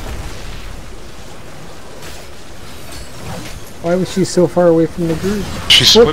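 Magic blasts and weapons clash in a hectic battle.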